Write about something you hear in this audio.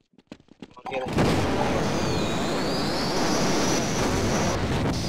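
An energy weapon fires a steady, crackling beam.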